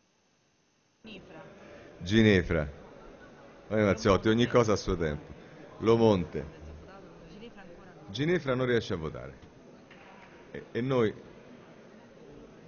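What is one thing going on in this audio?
A man speaks through a microphone in a large echoing hall, in short loud phrases.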